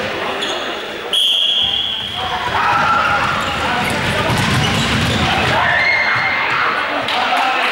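Sneakers squeak on a hard floor as children run.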